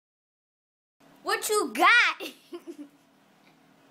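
A young girl shouts excitedly up close.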